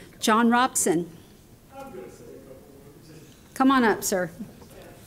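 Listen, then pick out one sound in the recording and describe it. A woman speaks in short phrases through a microphone.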